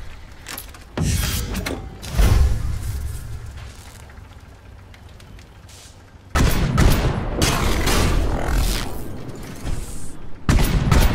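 Heavy gunfire booms in loud bursts.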